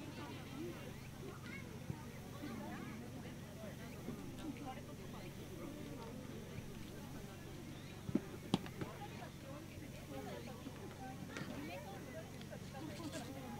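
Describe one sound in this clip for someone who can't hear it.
Children chatter and shout in the distance outdoors.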